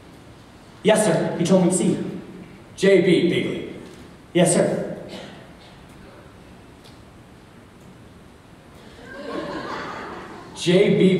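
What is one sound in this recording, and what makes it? A young man speaks loudly and clearly in a large echoing hall.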